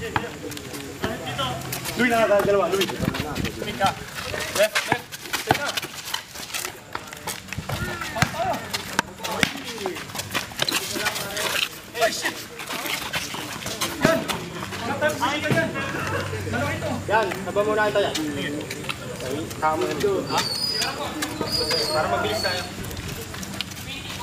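Young men call out to each other during a game.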